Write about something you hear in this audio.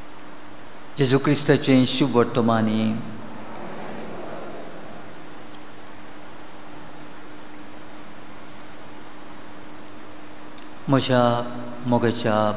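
An elderly man chants through a microphone.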